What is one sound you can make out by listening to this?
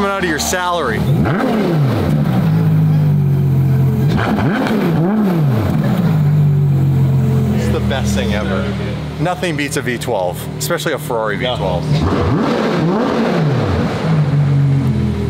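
A sports car engine idles with a deep rumble and revs up and down.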